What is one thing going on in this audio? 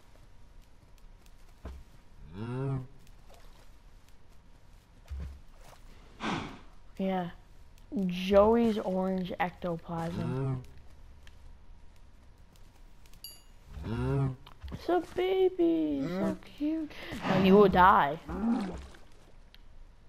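Cows moo nearby.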